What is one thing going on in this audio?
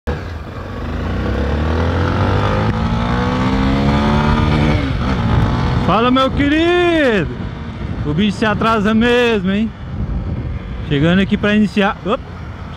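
A motorcycle engine revs up and drops as the rider shifts gears.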